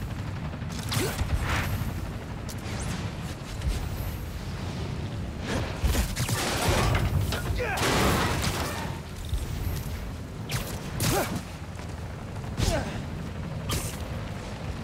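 Quick whooshing swishes come again and again.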